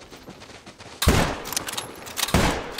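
A rifle fires a loud shot that echoes away.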